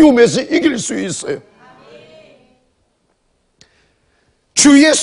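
A man preaches with emphasis through a microphone, his voice echoing in a large hall.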